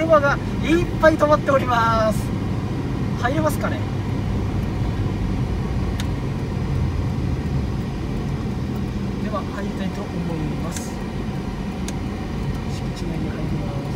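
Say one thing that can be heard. A car drives along a paved road, heard from inside with a low rumble.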